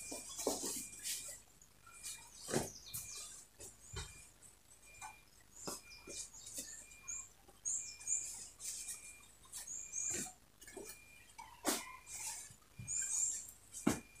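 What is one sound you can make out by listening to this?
Hands pat and thump fabric on a padded board.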